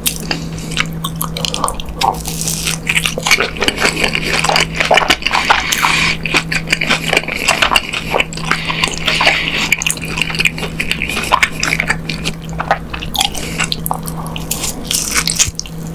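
A man bites into crispy fried food with a loud crunch.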